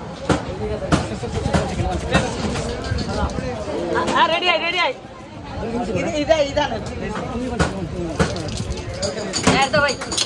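Ice and liquid rattle as a drink is tossed and shaken between cups.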